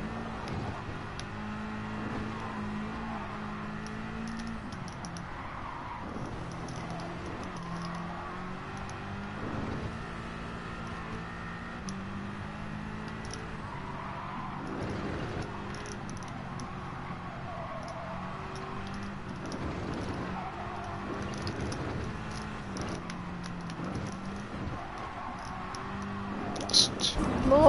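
A racing car engine roars steadily, rising and dropping in pitch as it shifts gears.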